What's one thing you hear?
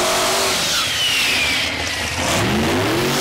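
Tyres squeal loudly as a truck does a burnout.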